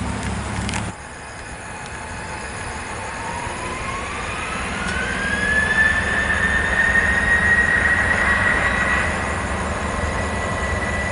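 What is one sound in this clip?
A jet airliner's engines roar and rise in pitch as it speeds up for takeoff.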